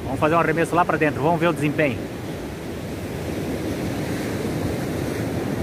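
Waves wash onto a beach steadily.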